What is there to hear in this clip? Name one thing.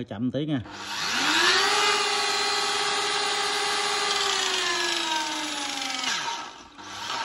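An electric saw motor whirs up to speed, runs, then winds down.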